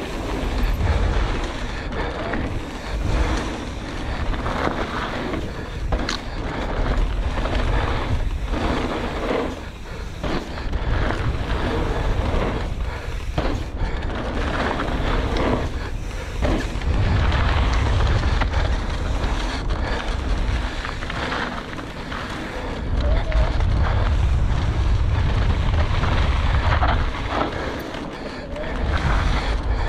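Wind rushes past a fast-moving rider.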